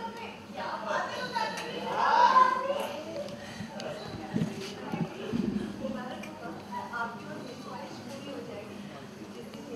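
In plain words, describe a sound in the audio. A group of men and women chatter together in a room.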